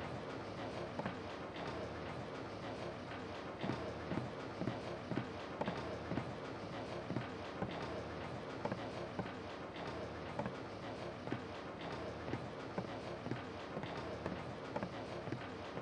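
Footsteps creak slowly across wooden floorboards.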